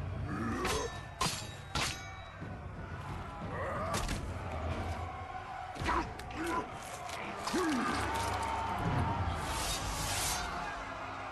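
Heavy weapon blows land with sharp, crunching thuds.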